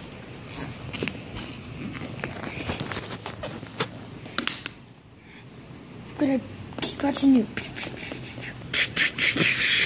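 Plastic toy figures click and knock against a wooden tabletop.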